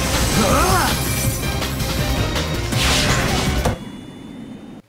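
Loud, fast action music plays with whooshing effects.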